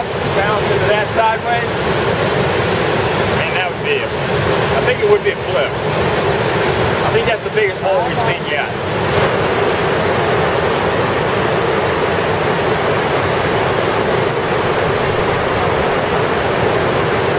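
River rapids roar loudly and steadily.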